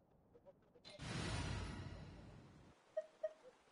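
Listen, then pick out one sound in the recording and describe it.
A soft whoosh swells and fades as a misty gust sweeps past.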